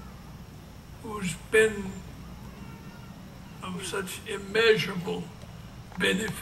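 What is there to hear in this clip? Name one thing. An elderly man speaks slowly into a microphone over loudspeakers outdoors.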